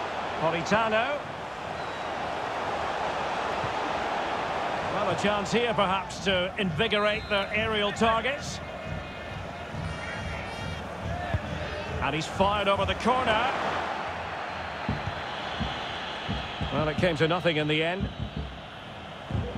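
A stadium crowd roars and chants steadily.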